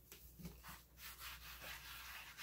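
Hands rub a hard surface.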